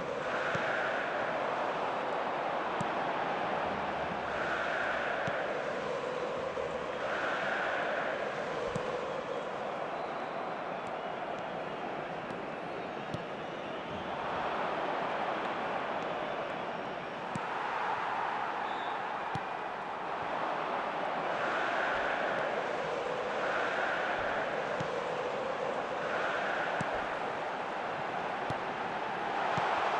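A ball is kicked with soft thuds now and then.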